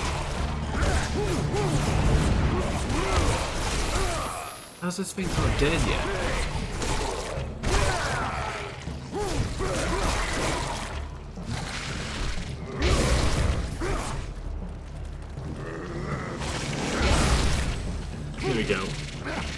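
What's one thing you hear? A giant spider hisses and screeches.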